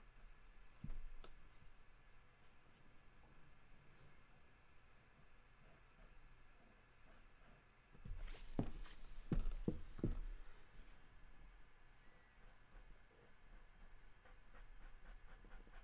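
A felt-tip pen squeaks and scratches across paper.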